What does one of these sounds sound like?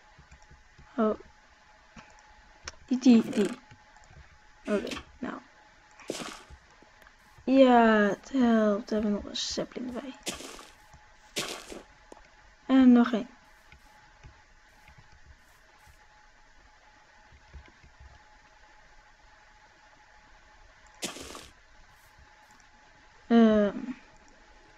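A boy talks calmly into a microphone close by, in short bursts.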